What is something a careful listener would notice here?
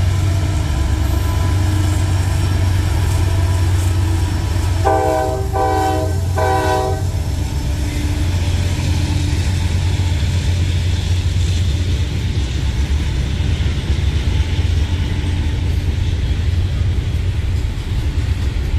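Freight cars clatter along the rails.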